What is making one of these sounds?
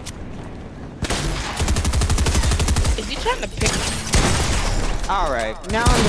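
Rapid gunshots crackle loudly.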